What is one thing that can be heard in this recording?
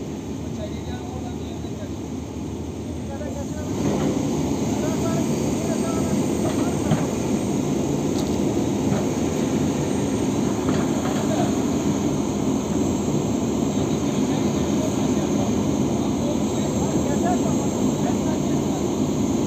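A heavy excavator engine rumbles close by, growing louder as the arm moves.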